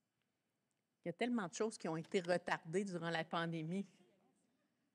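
A woman speaks through a loudspeaker in a large echoing hall.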